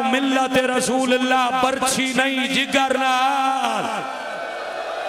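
A man chants loudly into a microphone in a large echoing hall.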